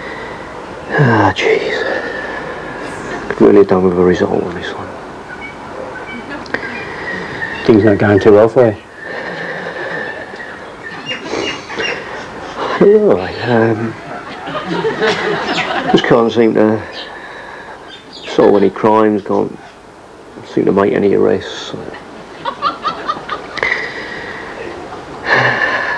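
A man speaks in a low, firm voice, close by.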